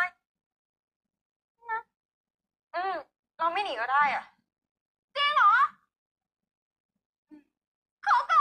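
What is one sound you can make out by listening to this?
A young woman speaks in short, bright, animated bursts, heard through a speaker.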